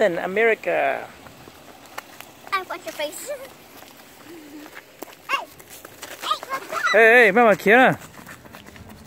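Young children chatter and call out excitedly close by.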